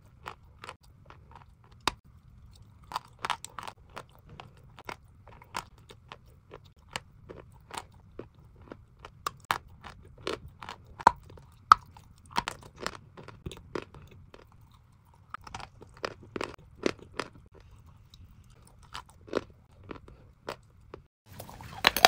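A young woman chews a soft, creamy food close to a microphone, with wet smacking and clicking mouth sounds.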